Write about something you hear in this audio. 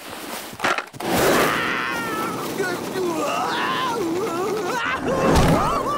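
A man yells in alarm.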